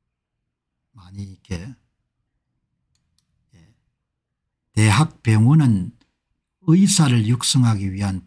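An older man speaks into a close microphone, reading out calmly.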